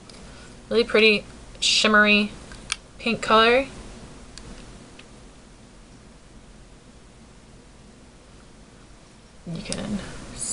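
A young woman speaks calmly, close to the microphone.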